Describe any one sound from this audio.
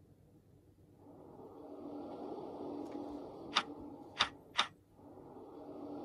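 Low eerie music plays from a tablet's small speaker.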